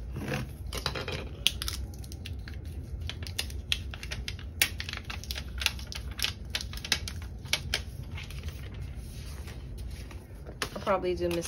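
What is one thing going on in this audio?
Fingers rub and tap on a thin plastic sheet, with small crinkles and clicks.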